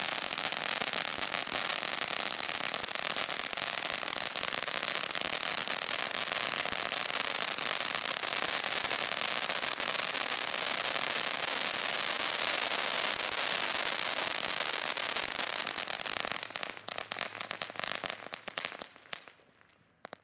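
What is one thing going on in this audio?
Fireworks pop with sharp bangs.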